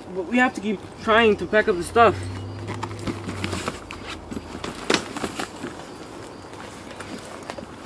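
A suitcase rustles as it is handled.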